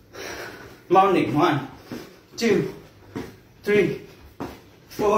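Feet thump on a floor mat in a steady rhythm.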